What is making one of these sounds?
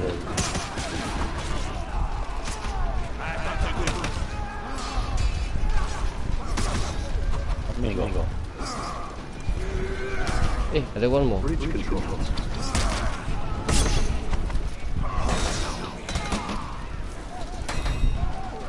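Swords clash and strike with sharp metallic hits.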